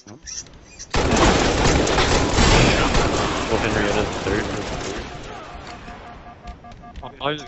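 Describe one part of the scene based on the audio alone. Gunfire rattles in a video game.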